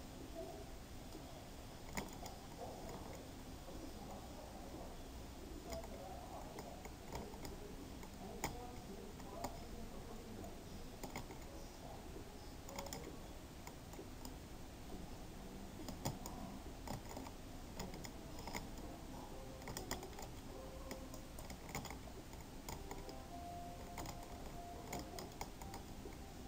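A pickaxe chips and cracks at stone blocks in quick repeated taps.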